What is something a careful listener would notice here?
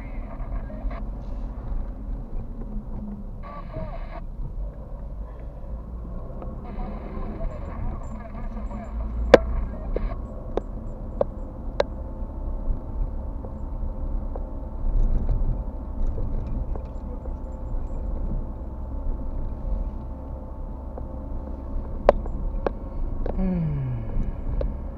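Tyres roll over a road.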